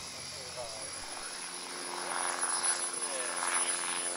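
A small model aircraft engine drones nearby on the ground.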